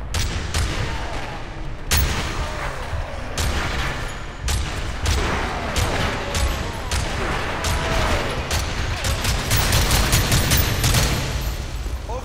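Gunshots fire in sharp bursts, echoing in an enclosed space.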